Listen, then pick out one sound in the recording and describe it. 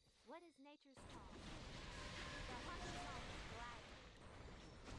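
Magic spells blast and crackle loudly.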